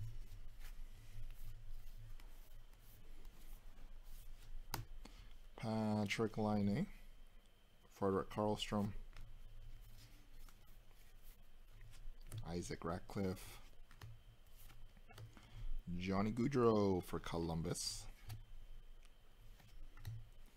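Trading cards slide and flick against each other in a hand.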